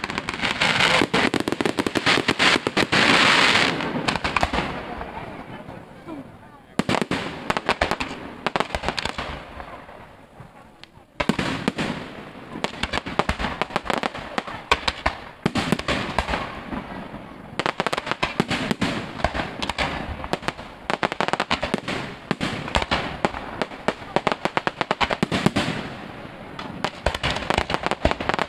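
Fireworks bang and crackle rapidly outdoors.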